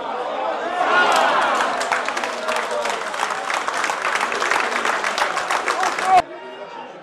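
Spectators clap their hands.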